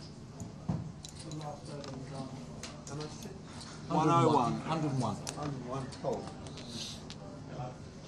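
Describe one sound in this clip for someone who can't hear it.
Poker chips clack together.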